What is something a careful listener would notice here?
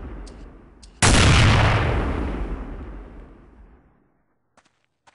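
A sniper rifle fires a loud shot that echoes and slowly fades.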